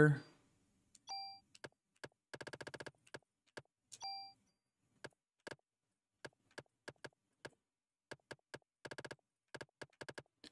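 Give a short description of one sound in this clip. Game menu beeps and clicks quickly.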